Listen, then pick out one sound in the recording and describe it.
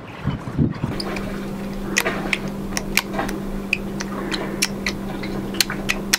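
Small plastic parts click and tick in a man's hands.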